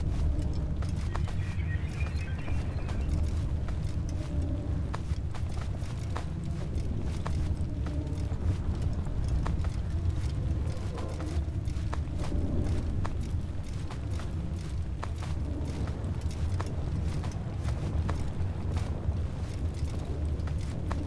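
Footsteps tap steadily through a crowd.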